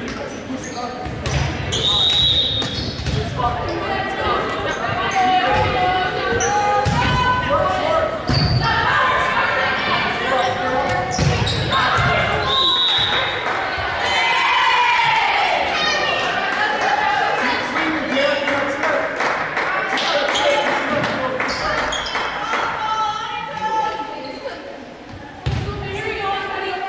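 A volleyball is hit with sharp smacks that echo in a large hall.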